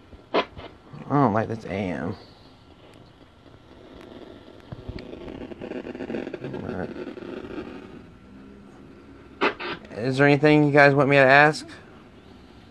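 A small speaker plays short electronic tunes.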